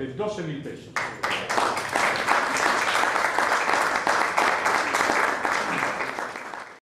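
A crowd applauds loudly in an echoing room.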